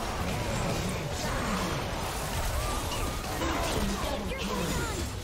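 Magic spells blast and crackle in a video game battle.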